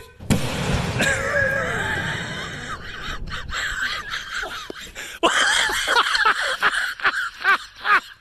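A man shouts and exclaims excitedly.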